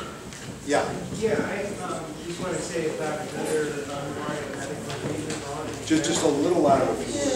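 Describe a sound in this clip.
An older man talks with animation, close by.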